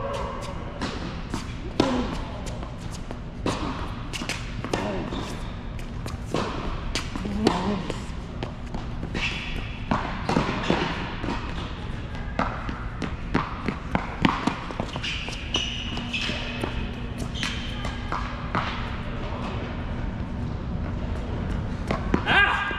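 Tennis balls pop off rackets in a large echoing hall.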